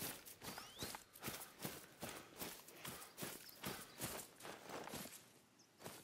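Footsteps rustle quickly through tall dry grass.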